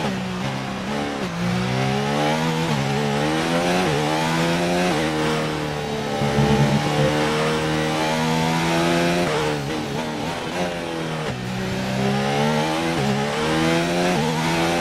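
A racing car engine whines loudly, rising in pitch as it speeds up and dropping sharply with each gear change and braking.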